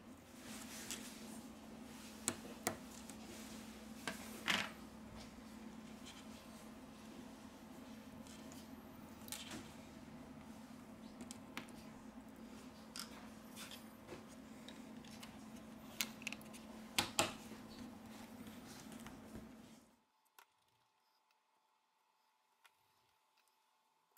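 Small plastic parts click and tap as a phone is taken apart by hand.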